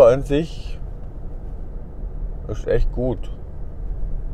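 A middle-aged man speaks briefly and calmly, close by.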